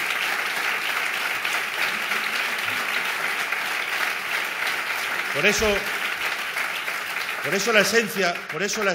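A crowd claps and applauds steadily.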